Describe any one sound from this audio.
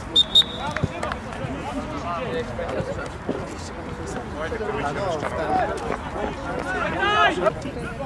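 Men cheer and call out loudly.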